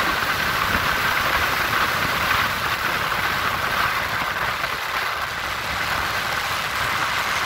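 Tyres roll steadily on a paved road.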